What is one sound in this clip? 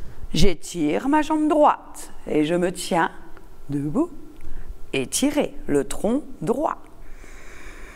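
A middle-aged woman speaks calmly and warmly into a clip-on microphone, close by.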